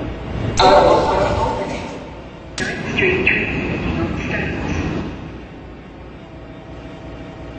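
A subway train rumbles along the tracks.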